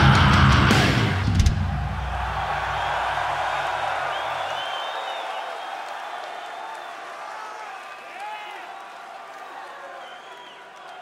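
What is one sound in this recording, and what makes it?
A large crowd cheers, shouts and whistles in a big echoing hall.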